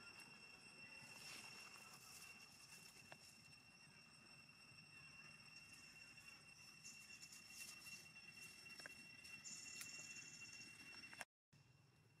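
Dry leaves rustle as monkeys move.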